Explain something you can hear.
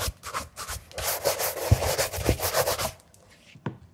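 A brush swishes briskly over a leather shoe.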